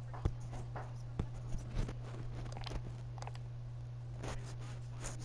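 Soft menu clicks tick as tabs switch.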